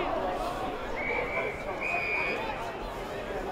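A referee's whistle blows twice in short blasts.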